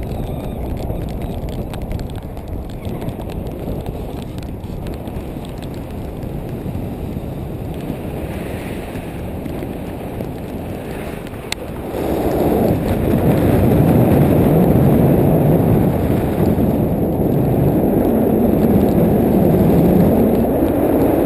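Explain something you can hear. Strong wind rushes and buffets past a microphone, growing louder partway through.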